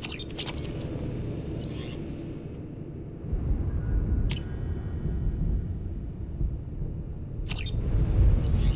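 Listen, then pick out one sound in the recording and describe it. A short electronic chime sounds as a menu opens.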